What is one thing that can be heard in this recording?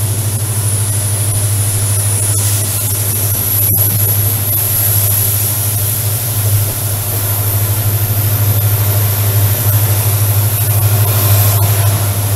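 Wind rushes past an open train window.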